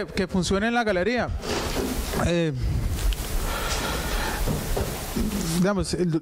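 A young man speaks calmly into a microphone, heard through a loudspeaker in a room with some echo.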